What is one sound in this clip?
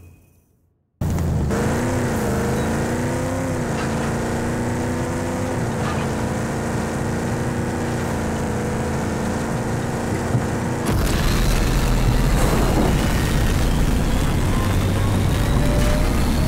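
Tyres crunch on gravel and dirt.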